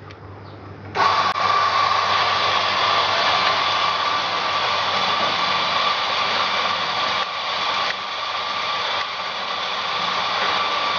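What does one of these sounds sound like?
A coffee grinder whirs loudly and steadily.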